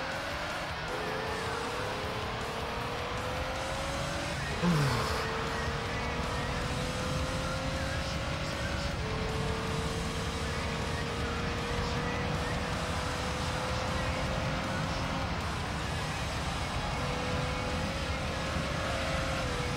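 A racing car engine whines at high revs, rising in pitch and dropping at each gear shift.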